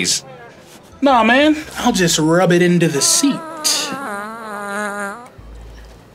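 A young man answers in a deep, dismissive voice.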